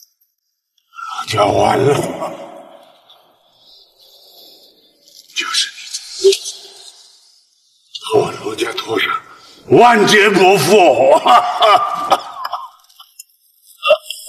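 An elderly man cries out in pain, gasping.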